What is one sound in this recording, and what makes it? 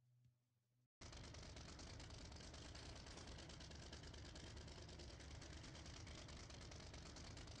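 A pickup truck engine idles with a steady rumble.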